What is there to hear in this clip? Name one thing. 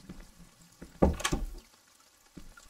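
A wooden door bangs open.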